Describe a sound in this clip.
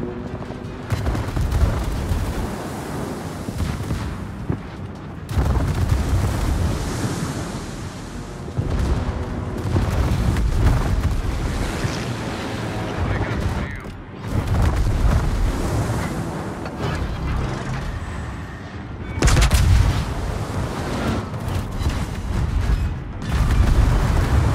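Heavy naval guns boom in deep rolling blasts.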